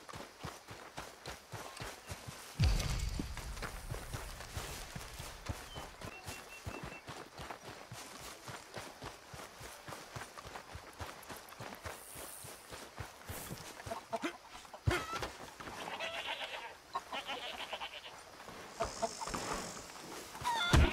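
Footsteps thud quickly on dirt.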